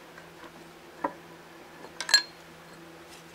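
Metal gears click and rattle as a hand turns them.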